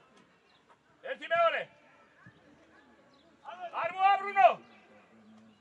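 A man shouts loudly across an open field.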